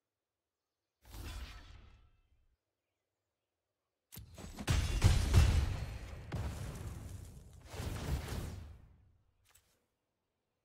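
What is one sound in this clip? A digital card game plays whooshing and impact sound effects.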